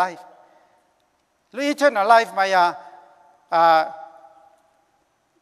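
A middle-aged man speaks slowly and formally into a microphone in a large echoing hall.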